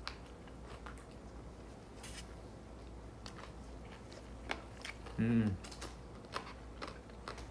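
A young man chews food close by.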